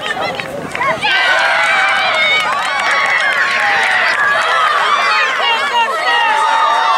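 A crowd of spectators cheers and shouts excitedly outdoors.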